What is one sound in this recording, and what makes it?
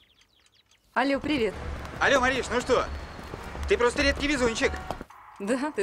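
A young woman talks on a phone with animation.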